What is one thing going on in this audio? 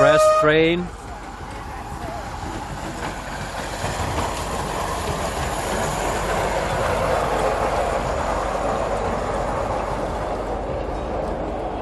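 A small train rumbles and clatters along its rails close by.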